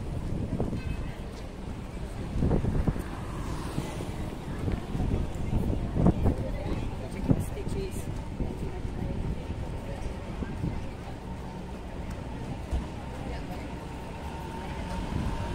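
A car drives slowly past nearby.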